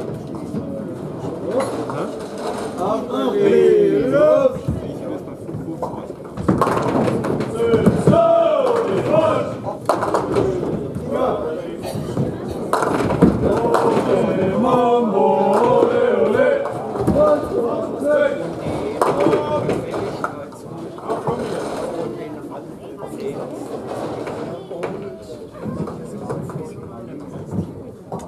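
Men talk and call out nearby in an echoing hall.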